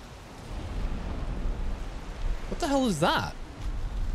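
Thunder rumbles and cracks.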